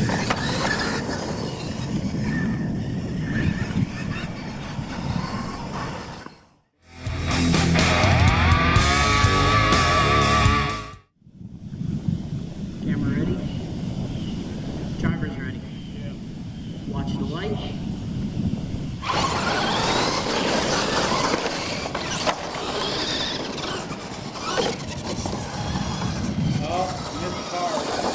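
Small electric motors of toy trucks whine as the trucks race over dirt.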